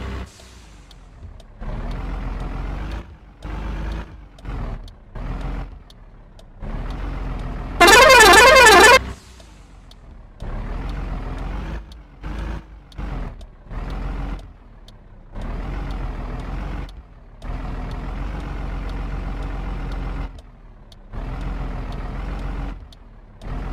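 A truck engine rumbles and revs in short bursts.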